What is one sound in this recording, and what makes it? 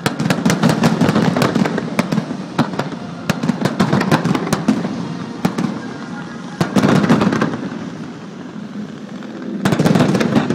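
Fireworks explode with sharp booms that echo.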